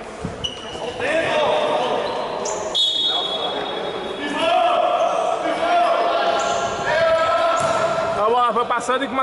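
A crowd shouts and cheers in an echoing hall.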